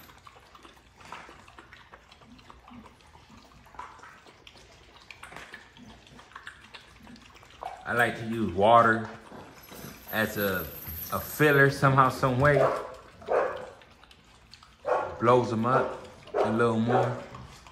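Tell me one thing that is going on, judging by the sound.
A dog eats from a metal bowl, chewing and lapping wetly.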